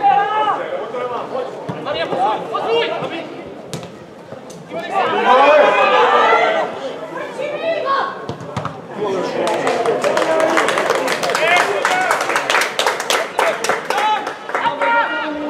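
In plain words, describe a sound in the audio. Young men shout to each other across an open pitch.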